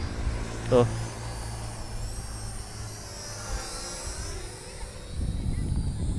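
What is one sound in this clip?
A small model plane buzzes overhead.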